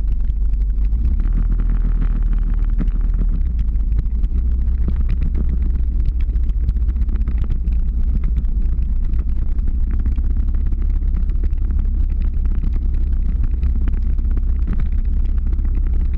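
Ski poles tap and scrape on the road.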